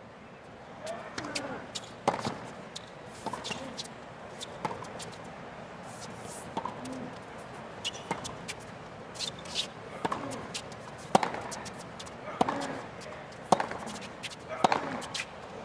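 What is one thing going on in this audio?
Tennis shoes squeak on a hard court.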